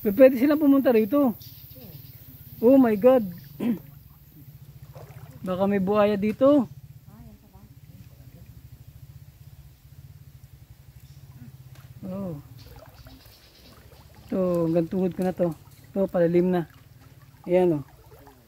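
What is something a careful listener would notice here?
A shallow stream gurgles gently over stones.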